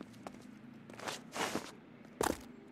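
A man's shoes scuff as he climbs onto a ledge.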